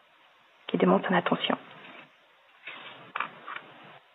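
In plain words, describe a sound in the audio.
A page of a book is turned.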